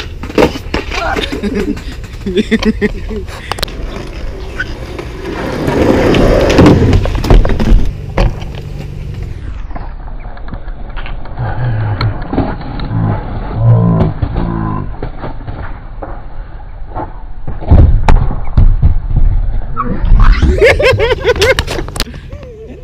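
Skateboard wheels roll and rattle over rough concrete.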